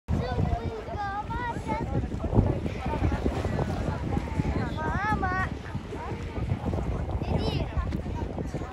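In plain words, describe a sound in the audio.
Children's high voices shout and squeal playfully nearby.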